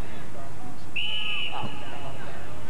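A referee blows a whistle once, short and sharp.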